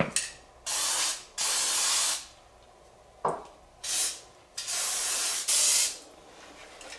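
An aerosol can sprays in short hissing bursts.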